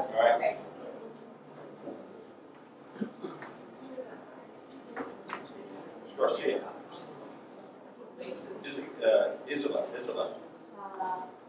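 An older man speaks to a group in a room, pausing between phrases.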